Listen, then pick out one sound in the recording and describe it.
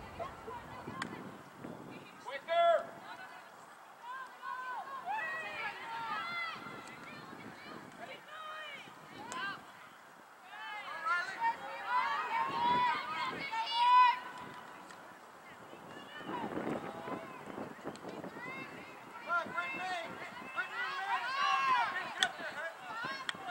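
Spectators, men and women, shout and cheer from the sideline outdoors.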